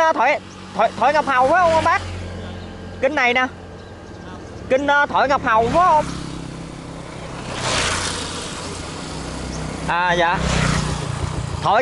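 A motorbike engine hums as it passes close by.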